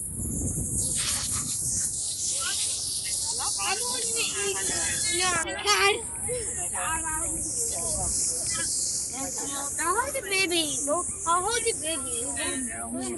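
A crowd of people chat nearby outdoors.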